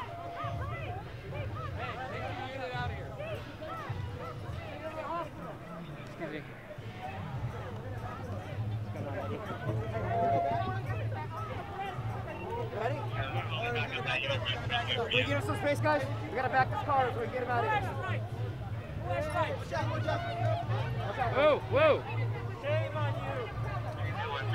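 A crowd of men and women shouts and talks loudly outdoors, close by.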